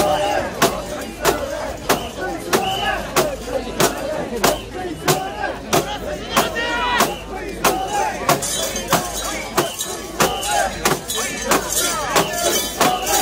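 A large crowd of men chants loudly outdoors.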